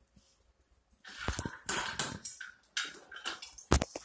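A dog crunches food from a bowl.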